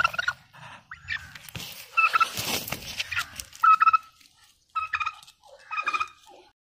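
A chicken clucks repeatedly close by.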